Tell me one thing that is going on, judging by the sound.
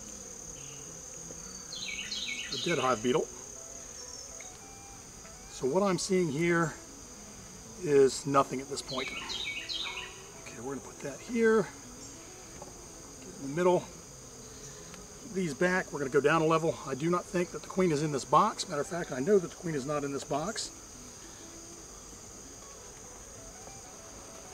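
Wooden hive frames knock and scrape.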